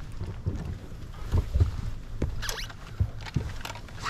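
A fish thumps and flops on a boat deck.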